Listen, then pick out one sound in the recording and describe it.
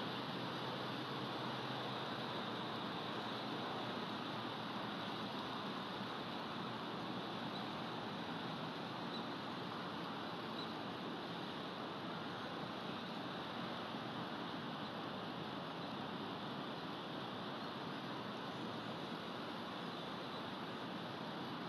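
Wind rushes steadily through pine branches outdoors.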